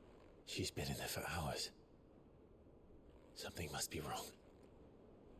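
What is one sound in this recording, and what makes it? A man speaks quietly and tensely.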